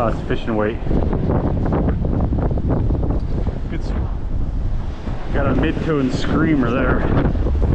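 Small waves wash onto the shore.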